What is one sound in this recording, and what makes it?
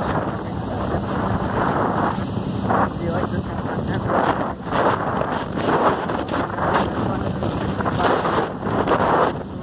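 Choppy water laps and splashes.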